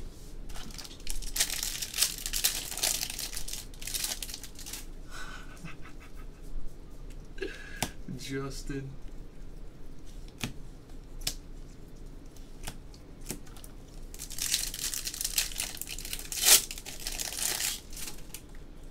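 Plastic wrapping crinkles as a pack is torn open.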